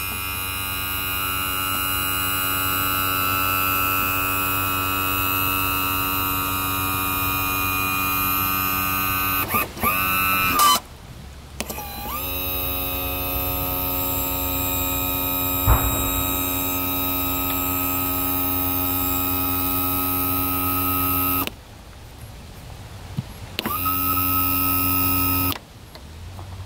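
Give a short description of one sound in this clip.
An electric tilt motor whines steadily, pausing a few times.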